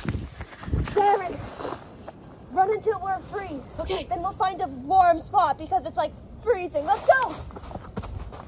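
Two boys talk with animation close by.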